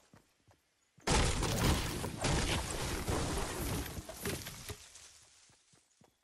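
A pickaxe chops into wood with quick, heavy thuds.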